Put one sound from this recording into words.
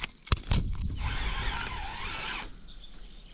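A fishing reel whirs as its handle is wound.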